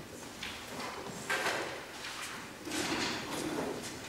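Chairs scrape softly on a wooden floor.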